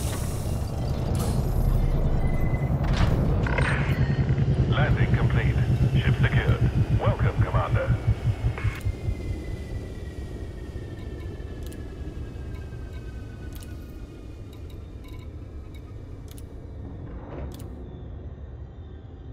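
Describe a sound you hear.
A spaceship engine hums low and steady, then quiets.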